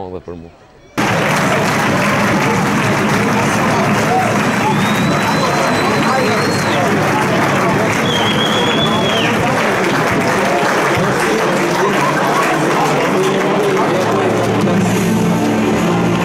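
A large stadium crowd roars and chatters outdoors.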